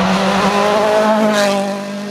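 A rally car speeds past close by with a rush of air.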